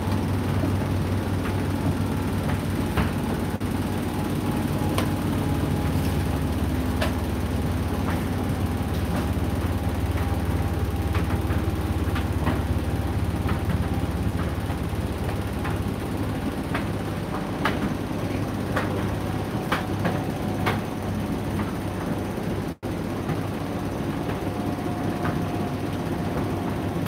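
A tumble dryer hums and rumbles steadily.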